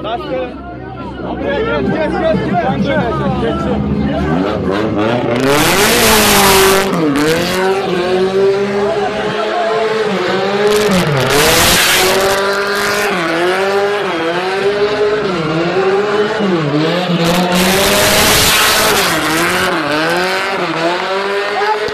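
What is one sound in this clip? A car engine revs hard and rises and falls as the car drifts in circles.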